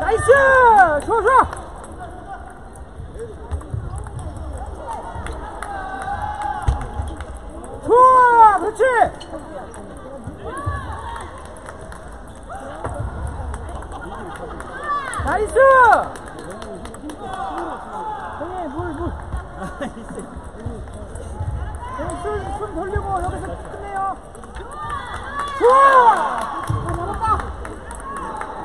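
A table tennis ball clicks back and forth on paddles and tables in a large echoing hall.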